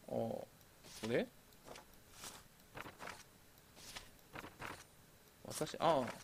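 A sheet of paper rustles as it slides on a desk.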